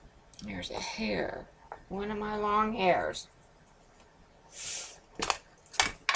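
A plastic ink pad case clicks open and shut.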